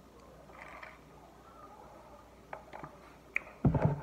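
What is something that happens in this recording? A woman sips a drink from a plastic cup.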